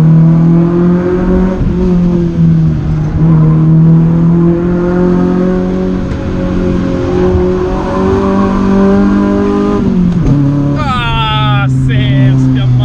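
A car engine roars at high revs, holding a steady pitch.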